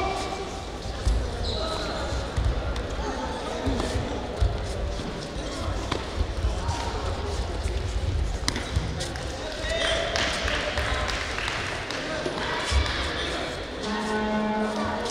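Feet thump and slap on a padded mat in a large echoing hall.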